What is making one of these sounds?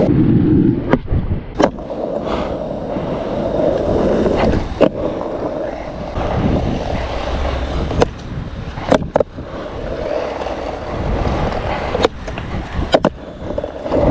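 A skateboard deck snaps and clacks sharply against the ground.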